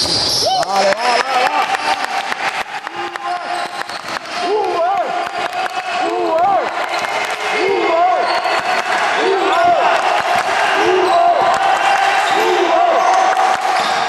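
Sneakers squeak sharply on a hard floor in an echoing hall.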